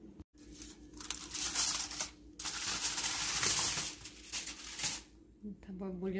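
Aluminium foil crinkles and rustles loudly.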